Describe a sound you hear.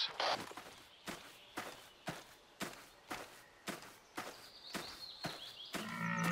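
Footsteps crunch through grass at a steady pace.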